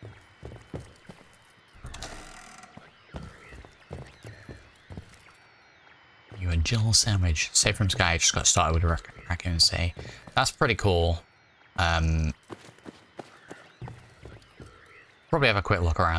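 Footsteps thud slowly across a wooden floor.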